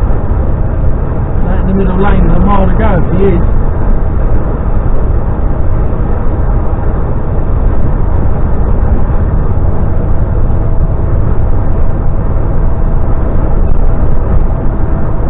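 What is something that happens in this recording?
A vehicle's engine hums steadily while driving at speed.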